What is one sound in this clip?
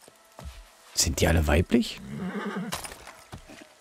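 A horse snorts close by.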